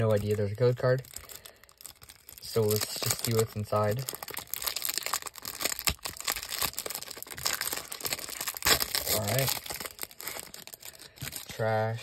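A plastic wrapper crinkles and rustles in hands.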